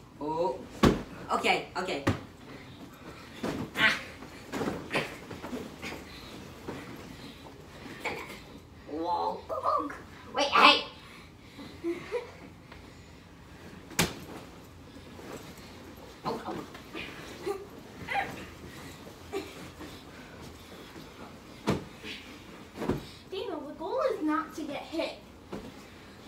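Feet thud and bounce on a bed mattress.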